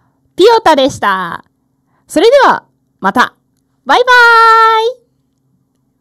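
A young woman speaks brightly and with animation into a close microphone, in short bursts.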